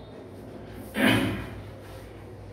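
A man strikes hand drums briefly.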